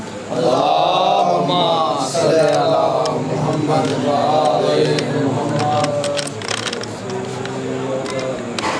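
A young man chants loudly in a drawn-out, melodic voice, close by.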